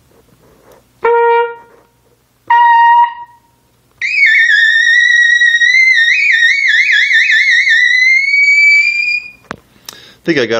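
A saxophone plays short notes and then a long wavering high phrase.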